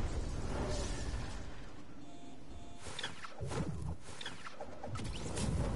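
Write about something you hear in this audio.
Wind rushes steadily past a skydiving game character.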